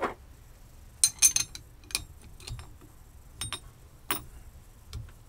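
A metal wrench clinks and clicks against a nut.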